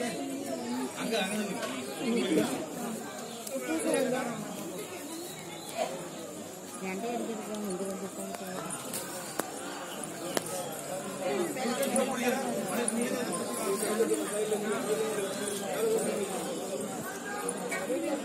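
A crowd of men and women talks and calls out nearby, outdoors.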